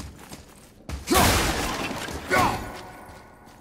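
Wood and metal crash and shatter with a loud bang.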